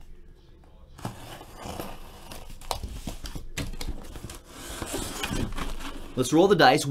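Cardboard scrapes and rustles as a box is handled.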